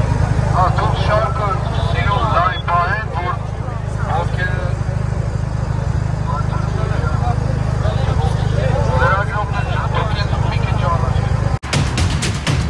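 A large crowd chants and shouts outdoors.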